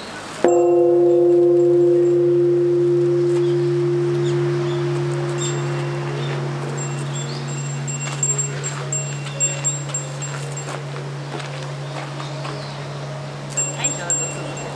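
A large temple bell is struck once and rings with a long, slowly fading hum.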